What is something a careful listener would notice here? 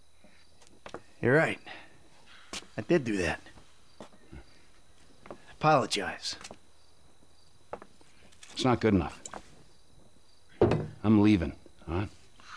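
A second man answers in a calm, low voice, close by.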